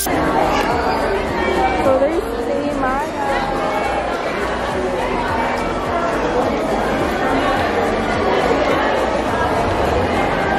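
A crowd of people chatters in a large, echoing hall.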